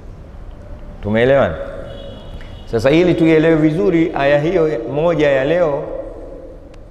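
A man speaks with animation into a microphone, his voice echoing slightly in a room.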